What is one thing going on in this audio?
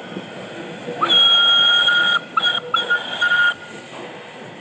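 A steam whistle blows loudly in several short and long blasts.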